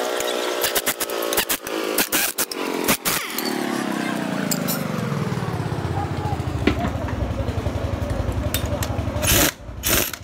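An impact wrench whirs and rattles loudly.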